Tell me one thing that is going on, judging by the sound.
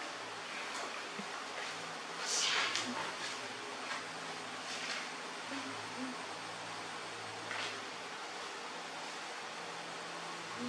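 A hand softly pats and rustles against cloth.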